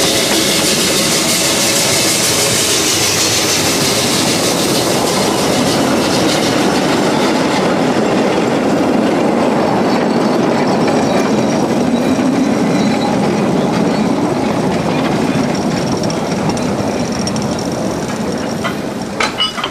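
A small steam locomotive chugs and puffs up close.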